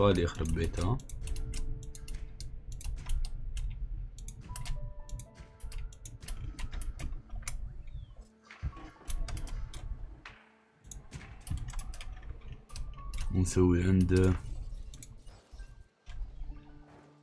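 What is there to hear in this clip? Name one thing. Short game clicks sound as fence sections are placed.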